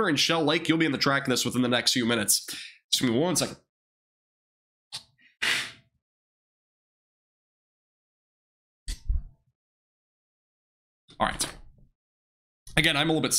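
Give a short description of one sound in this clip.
A young man speaks into a close microphone with animation, in short bursts.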